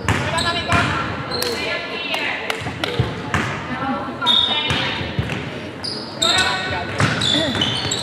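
A basketball bounces on the court with hollow thuds.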